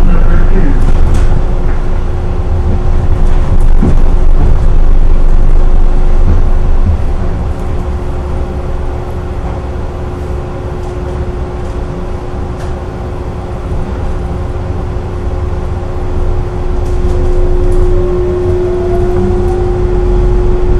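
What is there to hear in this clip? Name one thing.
An automated train rumbles steadily along its track.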